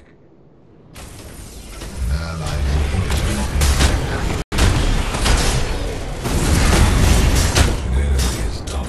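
Magic blasts and weapon strikes crash and boom in a fight.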